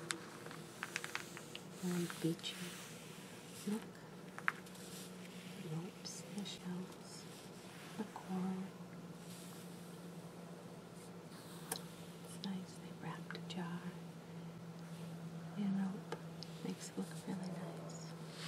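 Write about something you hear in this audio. Fingernails tap on glossy magazine pages.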